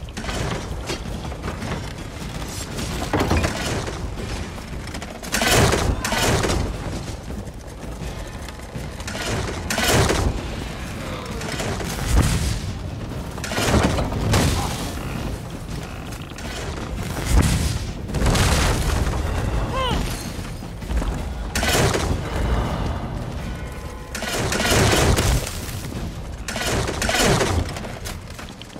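Magic blasts burst and crackle again and again.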